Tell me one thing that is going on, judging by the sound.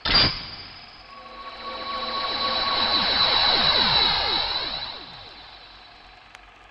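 A bright chiming sparkle rises and swirls, then fades.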